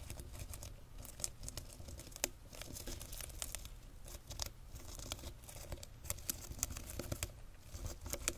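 Plastic containers tap and rustle close to a microphone.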